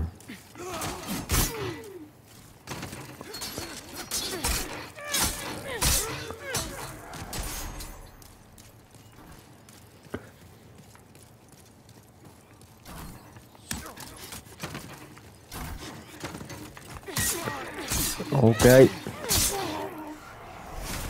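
Swords clash and strike with sharp metallic clangs.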